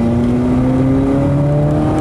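Windscreen wipers sweep across the glass.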